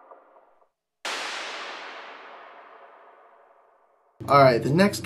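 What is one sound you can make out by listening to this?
A short burst of hissing noise hits and slowly fades away.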